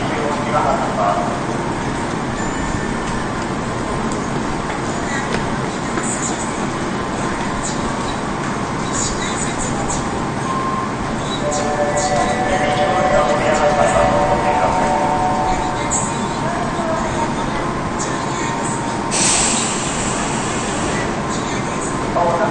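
Footsteps shuffle past on a hard floor.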